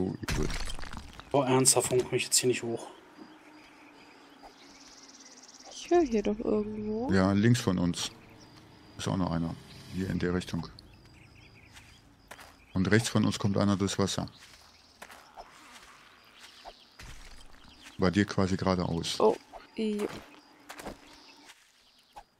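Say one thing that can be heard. Footsteps crunch softly through dry grass.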